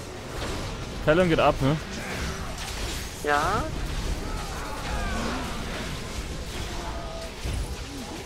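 Magic blasts crackle and whoosh during a fight.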